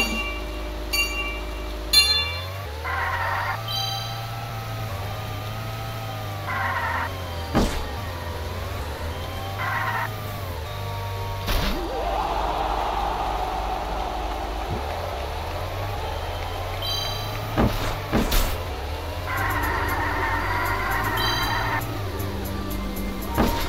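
A toy car's engine hums steadily and rises and falls in pitch.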